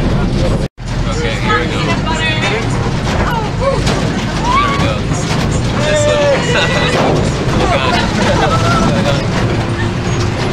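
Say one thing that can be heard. Young people laugh and shout cheerfully close by.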